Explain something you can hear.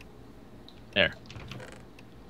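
A wooden chest creaks open.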